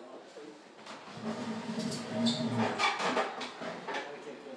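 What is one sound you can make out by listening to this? A wooden drawer slides open.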